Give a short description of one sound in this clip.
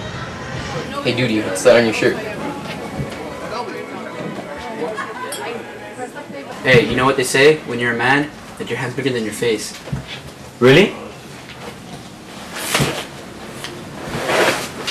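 A teenage boy talks nearby.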